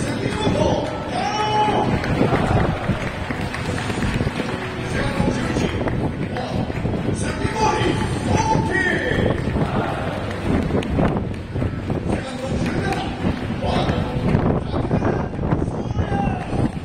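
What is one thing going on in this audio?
A large crowd cheers and chants in an open stadium.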